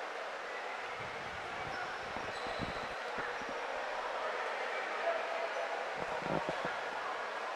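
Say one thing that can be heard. A futsal ball thuds as players kick it.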